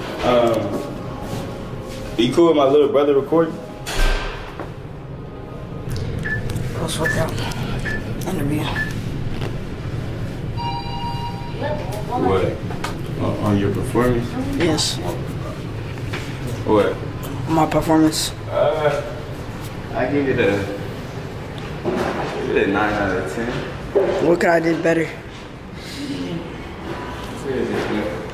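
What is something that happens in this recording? A man talks casually, close by.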